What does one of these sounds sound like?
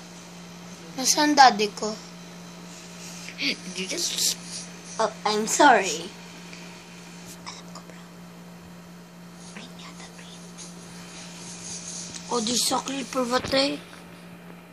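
A child speaks close by in short bursts.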